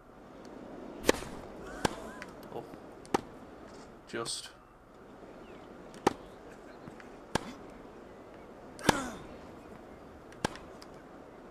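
A tennis ball is struck sharply with a racket, back and forth.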